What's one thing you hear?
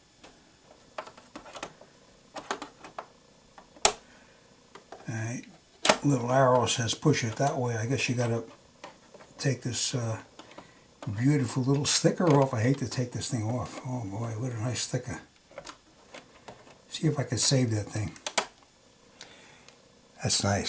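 Small clicks and taps sound as hands handle a sewing machine.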